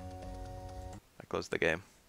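Electronic game music plays and suddenly cuts off.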